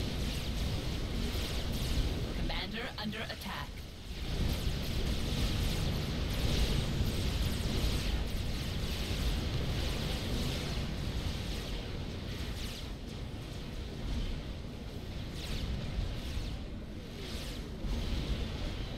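Guns fire and explosions rumble in a battle.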